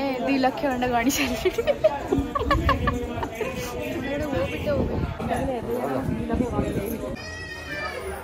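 A young woman talks cheerfully and laughs close by.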